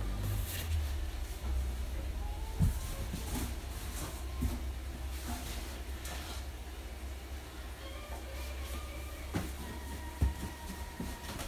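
Plastic bags rustle as a man handles them.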